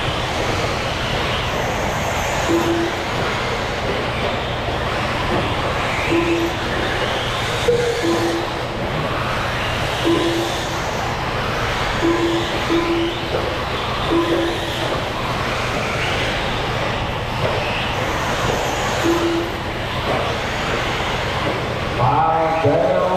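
Small electric race cars whine loudly as they speed around a dirt track.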